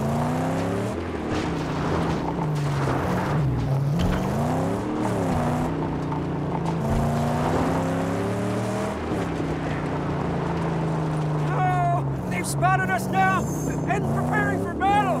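A car engine roars and revs up and down as it drives over rough ground.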